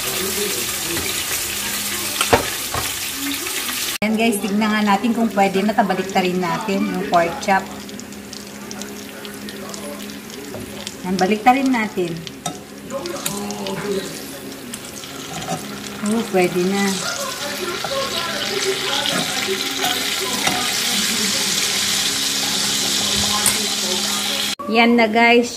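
Meat sizzles and spits as it fries in a pan.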